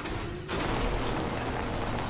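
A small robot rumbles along on clanking treads.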